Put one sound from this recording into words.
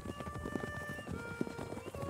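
Horses gallop across open ground.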